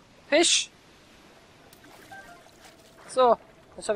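Water splashes softly as a swimmer paddles.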